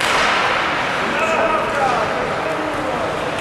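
Players shout to each other across the rink.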